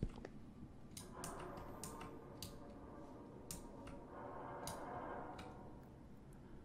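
A man speaks quietly into a microphone, close by.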